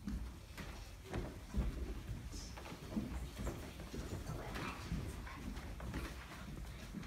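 Footsteps thump on a wooden stage.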